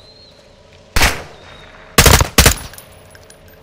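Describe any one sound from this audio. A rifle fires a few loud, sharp shots.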